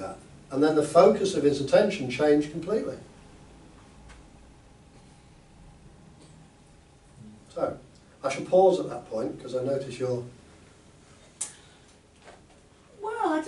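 A middle-aged man speaks with animation, pausing now and then.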